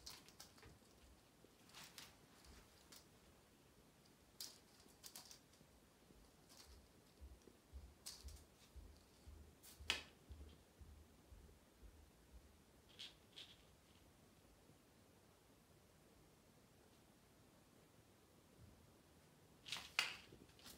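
A feather toy rustles and swishes as it is whipped about.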